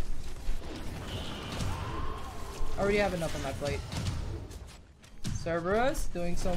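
Video game combat sounds clash and ring throughout.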